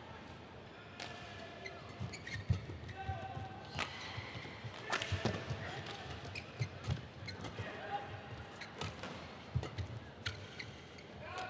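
Shuttlecock hits from rackets crack sharply across a large echoing hall.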